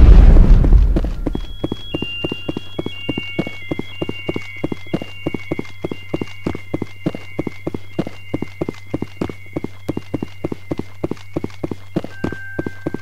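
Footsteps run quickly across a metal floor.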